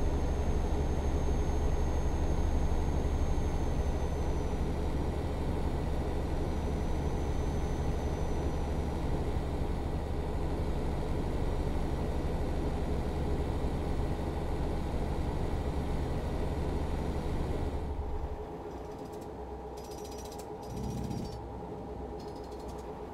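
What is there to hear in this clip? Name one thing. A truck engine drones steadily as it drives along a road.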